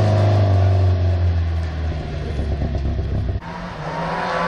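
A rally car engine roars as the car speeds away.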